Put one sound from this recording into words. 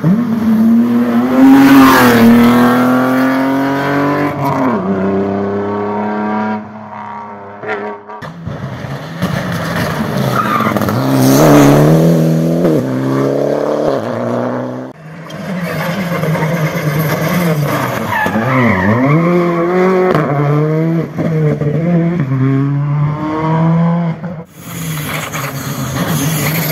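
A rally car engine roars loudly as it accelerates and revs up and down through gear changes.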